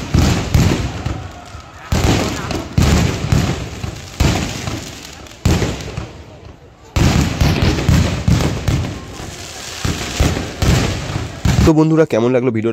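Fireworks bang and crackle loudly outdoors.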